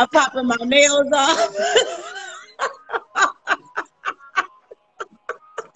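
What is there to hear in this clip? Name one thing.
A woman laughs loudly and heartily over an online call.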